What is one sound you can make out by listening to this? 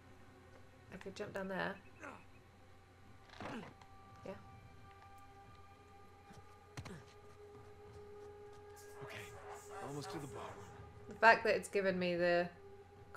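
A young woman talks casually into a headset microphone.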